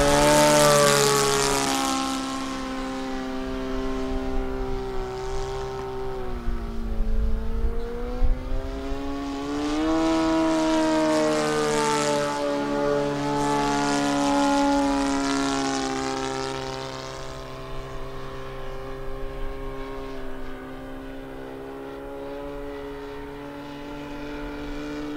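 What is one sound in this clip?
A small model plane's engine buzzes overhead, its pitch rising and falling as it swoops past.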